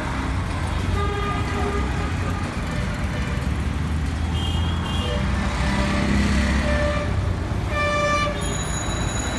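Vehicle horns honk in short blasts.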